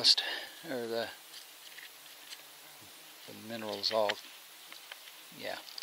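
Gloved fingers scrape and rub soil off a rock.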